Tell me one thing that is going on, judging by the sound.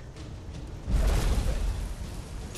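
A huge dragon lands with a heavy, rumbling thud.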